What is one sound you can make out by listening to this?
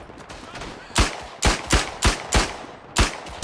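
A pistol fires rapid sharp shots.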